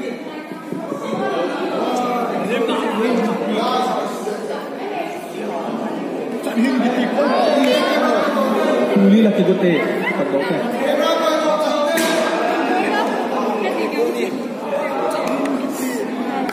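A crowd of young people chatter and call out all around in a large echoing hall.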